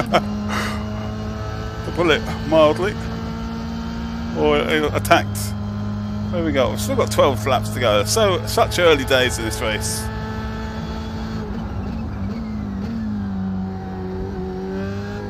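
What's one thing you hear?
A racing car engine hums steadily at high revs.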